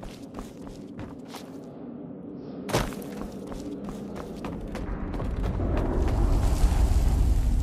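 Footsteps tap on stone in a large echoing space.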